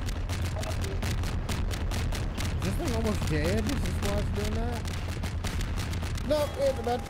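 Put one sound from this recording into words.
A helicopter fires rapid bursts of machine-gun fire.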